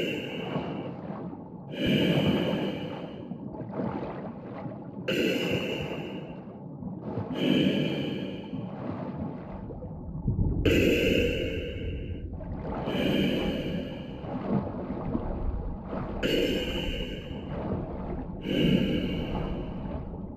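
A diver breathes loudly through a regulator in slow, even cycles.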